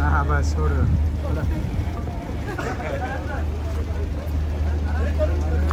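Several men and women talk nearby outdoors.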